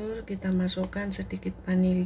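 A plastic bottle cap clicks open.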